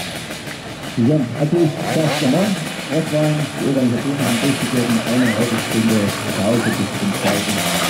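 A motorcycle engine revs and rattles loudly close by.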